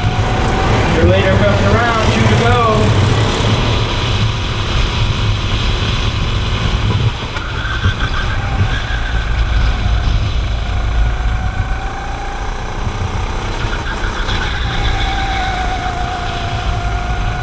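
A small kart engine buzzes and revs up and down close by.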